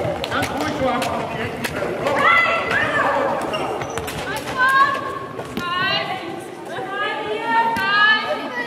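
Young women shout to each other across an echoing hall.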